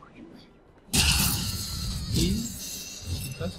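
A loud explosion bursts with a roaring blast.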